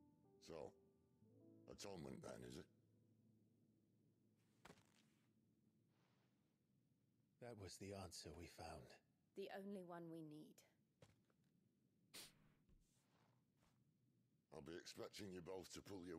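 A man speaks calmly in a low voice.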